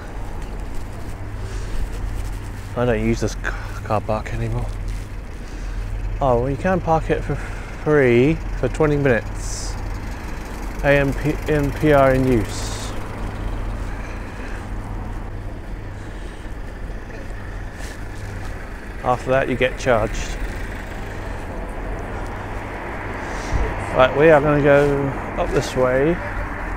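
Bicycle tyres roll over asphalt.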